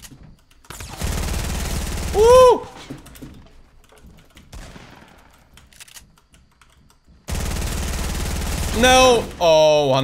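Gunfire blasts in rapid bursts.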